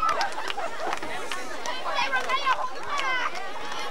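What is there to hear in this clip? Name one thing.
Football players' pads and helmets clash in a tackle.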